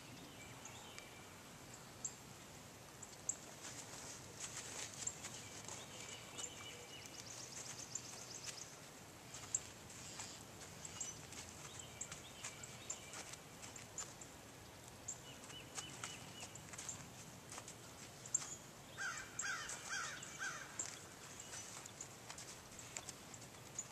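A horse's hooves thud softly on sand as it trots and lopes around an outdoor pen.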